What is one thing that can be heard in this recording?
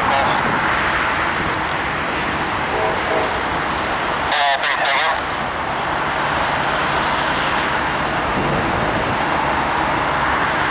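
A jet airliner roars steadily overhead as it descends.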